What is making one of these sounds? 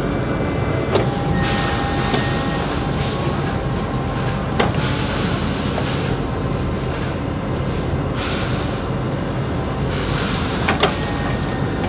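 Metal parts of a machine clank sharply now and then.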